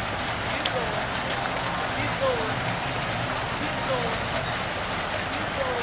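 Water splashes steadily as swimmers stroke through a pool outdoors.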